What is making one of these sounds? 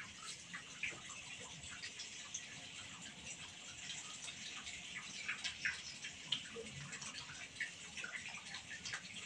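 Fish splash and rise at the water's surface, with small quick plops.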